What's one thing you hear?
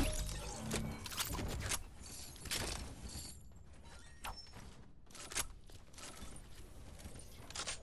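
Footsteps thud quickly on stairs.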